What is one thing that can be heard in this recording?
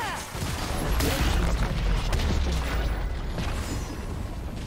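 A stone tower crumbles with a heavy explosion.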